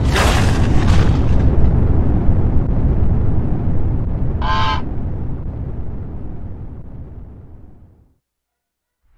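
A loud blast booms and rumbles, slowly fading away.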